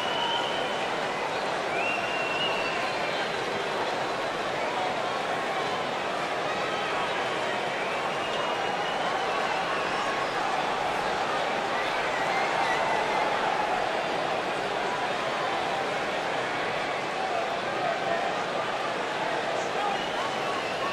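A large arena crowd cheers.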